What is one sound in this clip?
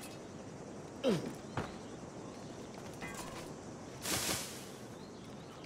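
A figure rustles into a pile of dry hay.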